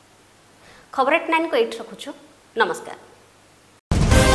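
A woman speaks calmly and clearly into a microphone.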